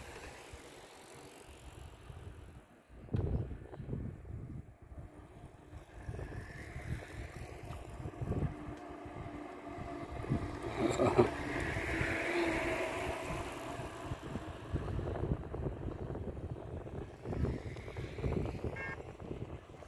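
Wind gusts blow outdoors.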